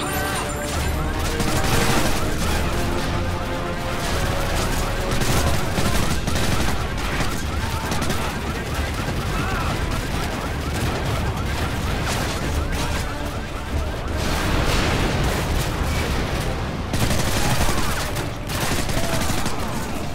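Rifles fire in rapid bursts close by.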